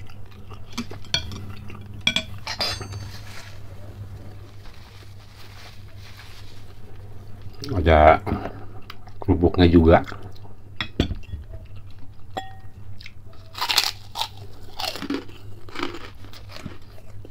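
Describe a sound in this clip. A man chews and slurps food noisily close to a microphone.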